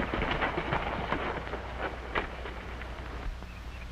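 Horses' hooves thud on dirt as they gallop up.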